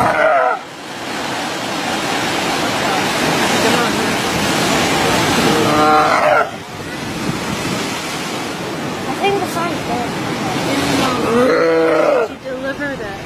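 A sea lion bellows and barks in loud, rough calls.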